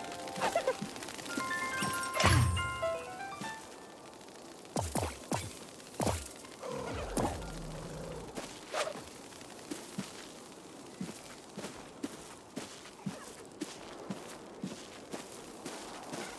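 Footsteps patter softly on dirt.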